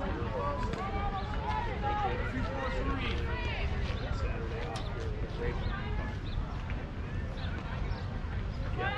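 Children and adults chatter and call out nearby outdoors.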